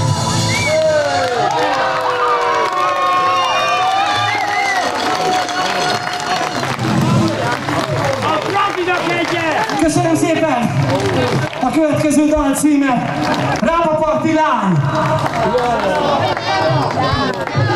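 A band plays loud live music through loudspeakers outdoors.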